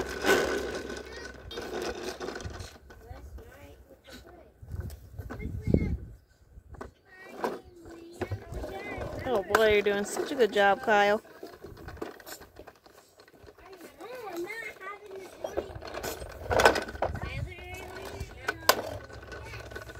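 A toy lawn mower rattles as it rolls over paving stones.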